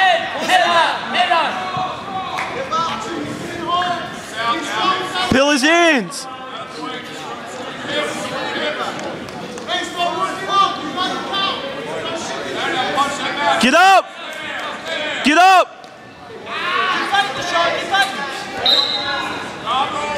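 A crowd of spectators talks and calls out in an echoing gym.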